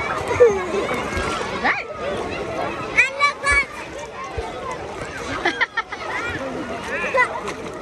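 A young child splashes water by hand.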